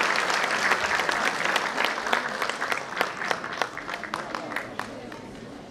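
Dancers' feet stamp and tap on a wooden stage.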